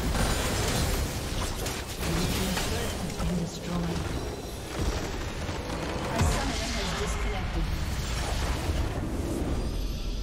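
Game battle effects crash and blast in quick bursts.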